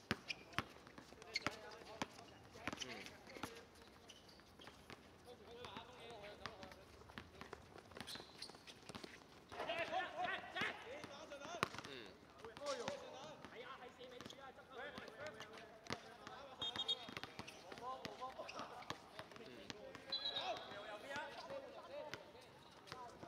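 Shoes scuff and squeak on the hard court.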